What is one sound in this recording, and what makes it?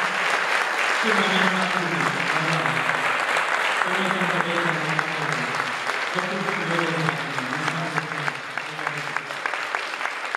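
A young man sings loudly through a microphone in a large hall.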